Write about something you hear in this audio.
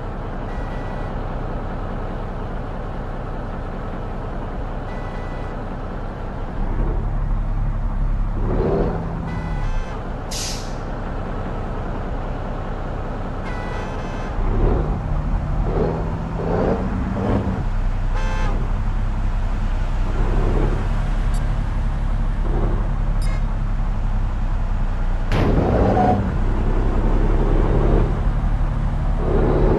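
A truck engine rumbles steadily and grows louder as it speeds up.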